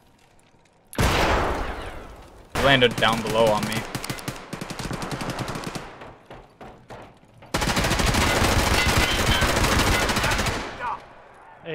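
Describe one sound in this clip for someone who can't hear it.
A rifle fires loud bursts that echo.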